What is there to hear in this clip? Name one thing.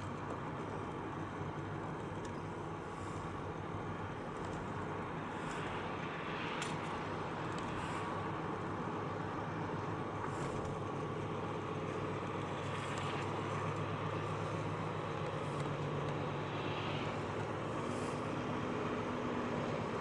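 Tyres hiss on a wet road.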